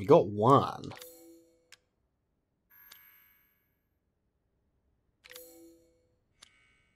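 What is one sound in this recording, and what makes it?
A short electronic chime sounds as a menu opens and closes.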